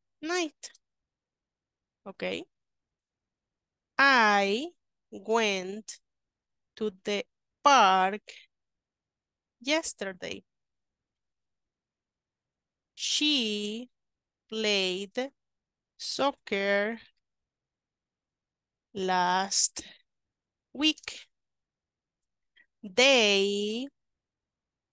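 A woman speaks slowly and clearly over an online call, in short phrases with pauses.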